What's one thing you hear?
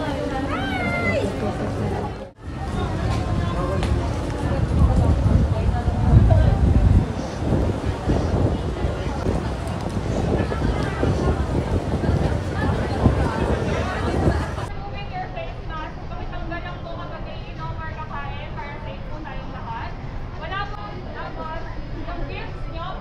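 A crowd of young people chatters and talks loudly all around.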